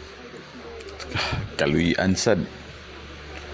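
A second man answers in an angry, strained voice.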